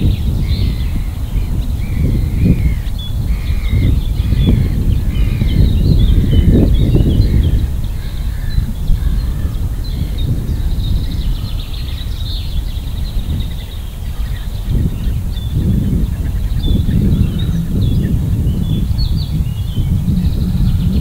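Wind gusts across open water and buffets the microphone.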